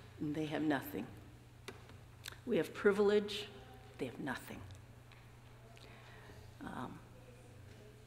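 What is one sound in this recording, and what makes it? A middle-aged woman speaks calmly into a microphone, in a large echoing hall.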